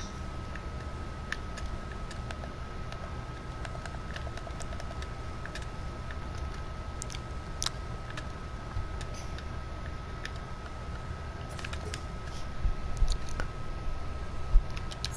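Short clicks and taps of game building sound effects come every few seconds.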